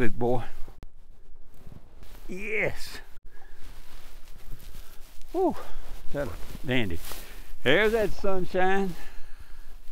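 An elderly man talks calmly and cheerfully into a close microphone.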